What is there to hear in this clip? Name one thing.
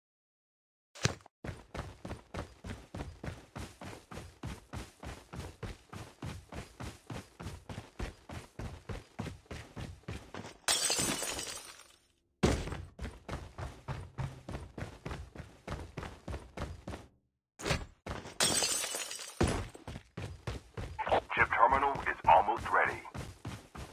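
Quick footsteps run steadily over grass and wooden floors.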